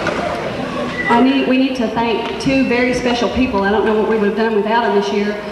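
A woman speaks calmly into a microphone through a loudspeaker in an echoing hall.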